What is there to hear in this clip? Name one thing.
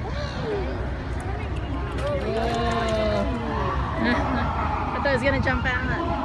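A dolphin splashes at the water's surface.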